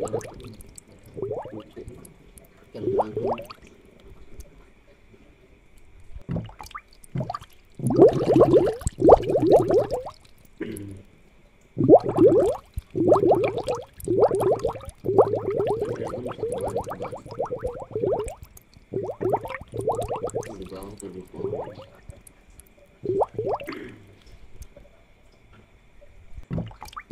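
Air bubbles stream and gurgle steadily in water.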